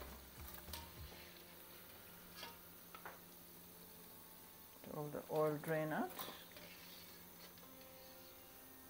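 Hot oil sizzles and bubbles softly.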